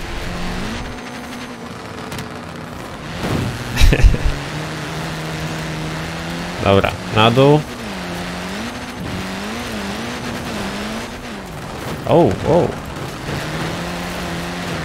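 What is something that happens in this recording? A car engine hums and revs steadily at high speed.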